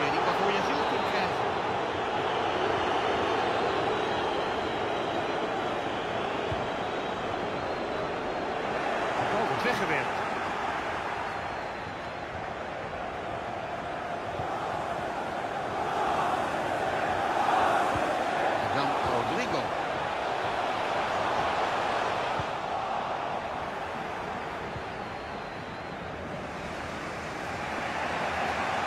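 A large stadium crowd murmurs and roars steadily, swelling now and then.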